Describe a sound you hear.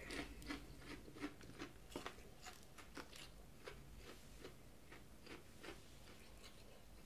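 A man chews food with wet smacking sounds.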